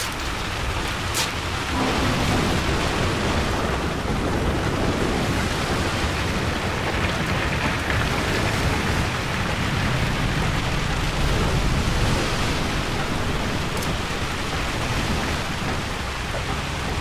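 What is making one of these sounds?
Heavy rain pours down on a metal deck in a storm.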